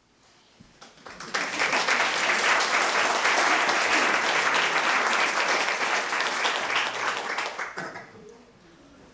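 An audience applauds loudly in an echoing room.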